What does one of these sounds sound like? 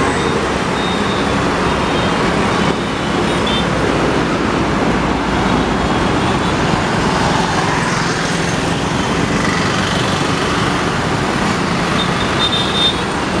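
Motorbike engines buzz as they pass close by.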